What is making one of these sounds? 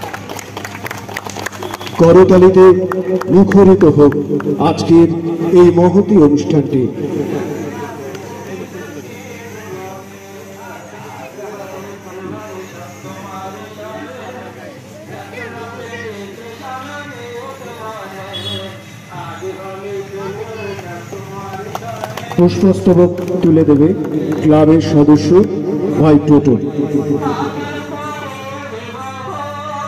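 Several men talk quietly nearby.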